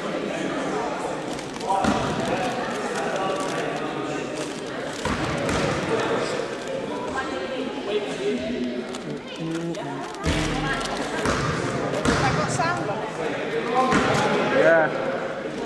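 Players' voices call out in a large echoing gym.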